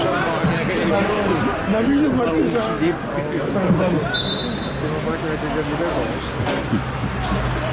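Several men talk nearby in a crowd of spectators, outdoors.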